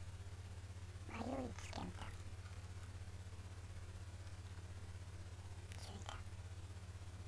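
A young man speaks briefly and calmly, close to a microphone.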